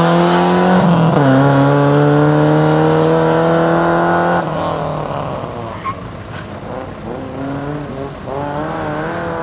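A rally car engine roars loudly close by, shifting gears as it accelerates away.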